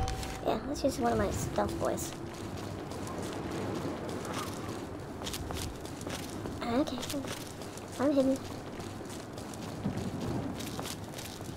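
Footsteps crunch over rubble.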